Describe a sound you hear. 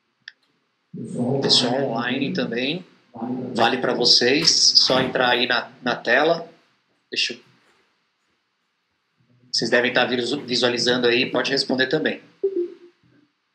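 A second man speaks calmly through a microphone.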